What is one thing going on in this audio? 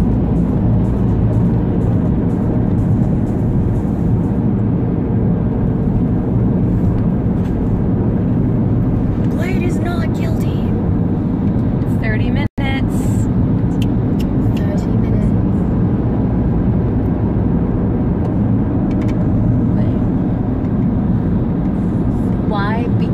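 A car's engine and road noise rumble steadily inside the car.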